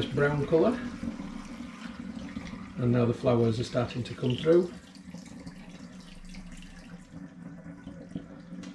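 Liquid pours and splashes into a jug.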